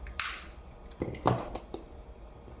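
Plastic parts click as a small device is pulled apart.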